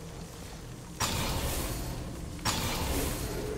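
A menu selection sound whooshes softly as the highlight moves.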